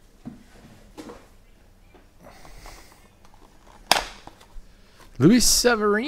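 Hands open a cardboard box with soft scraping and rustling.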